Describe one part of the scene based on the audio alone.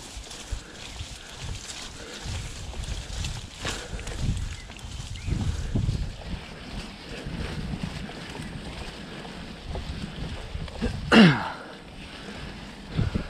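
Tall grass brushes and swishes against a moving bicycle.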